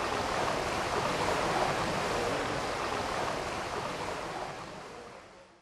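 Water ripples and laps gently, fading away at the end.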